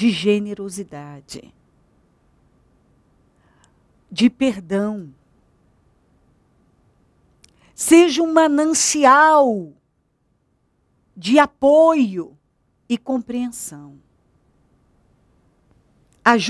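A woman speaks with animation into a close microphone, in short bursts with pauses.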